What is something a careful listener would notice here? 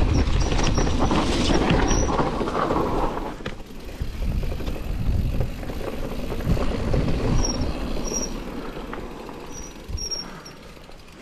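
Wind buffets past close by.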